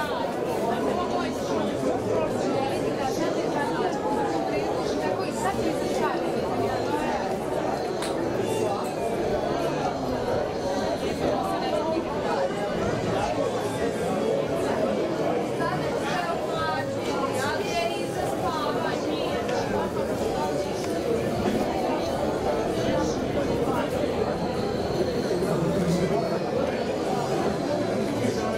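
A large crowd chatters and murmurs outdoors.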